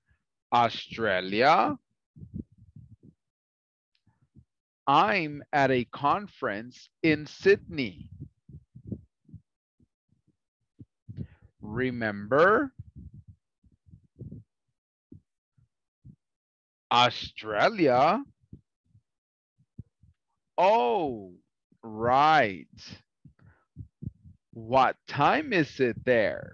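A man speaks slowly and clearly through an online call, pausing between phrases.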